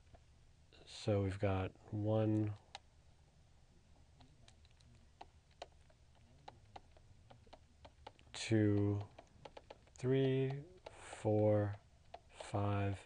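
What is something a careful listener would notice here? An electronic keyboard plays single held notes, one after another.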